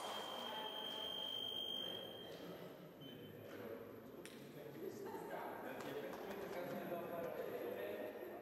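Footsteps shuffle on a hard floor in an echoing hall.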